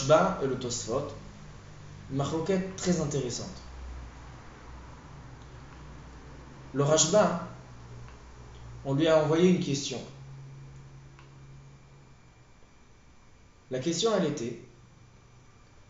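A young man speaks calmly close by, in short phrases with pauses.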